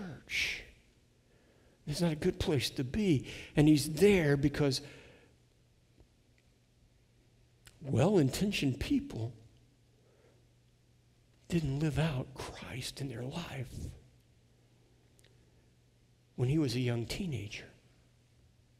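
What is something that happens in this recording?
A middle-aged man speaks calmly through a headset microphone, pausing between phrases.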